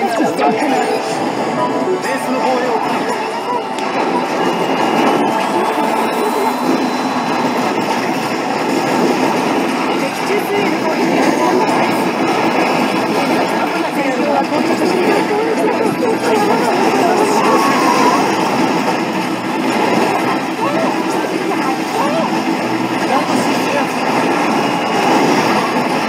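Battle sound effects of gunfire and blasts blare from an arcade machine's speakers.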